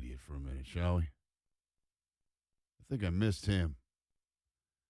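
A middle-aged man speaks into a close microphone in short bursts.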